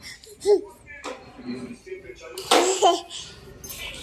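A young boy laughs and shouts playfully.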